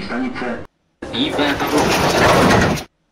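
Sliding doors of a metro train open.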